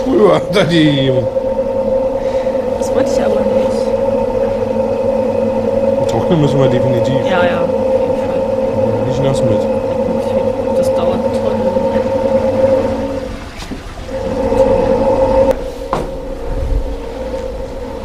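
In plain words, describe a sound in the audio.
Washing machines hum steadily.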